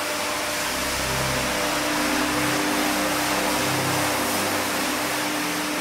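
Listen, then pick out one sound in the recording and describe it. A rotary floor scrubber whirs as it scrubs a foamy wool rug.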